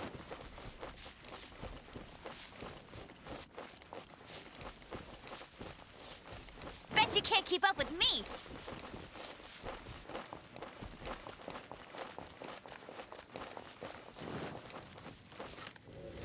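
Quick footsteps patter on grass.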